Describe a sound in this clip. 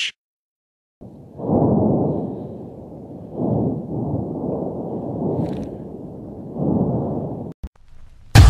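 A volcano erupts with a deep, rumbling roar.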